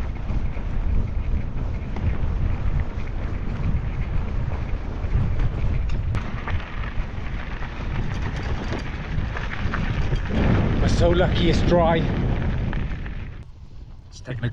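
Wind buffets the microphone outdoors with a low rumble.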